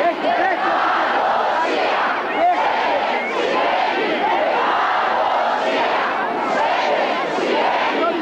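A large crowd of men and women talks and murmurs loudly outdoors.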